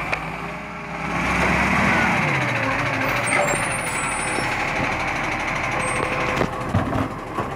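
A garbage truck's hydraulic arm whines as it moves.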